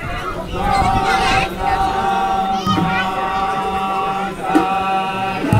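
A group of men sing together.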